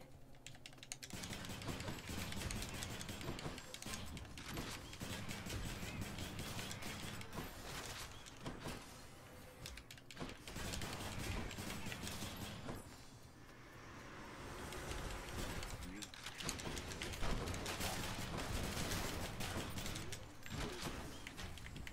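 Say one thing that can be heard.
Game fighting sounds clash and whoosh.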